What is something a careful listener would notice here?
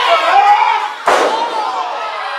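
A body slams down hard onto a wrestling ring mat.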